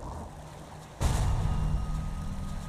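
A magic blast bursts loudly and rumbles.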